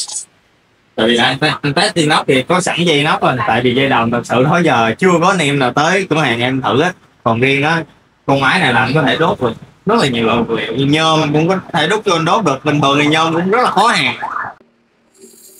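A man talks steadily and with animation, close by.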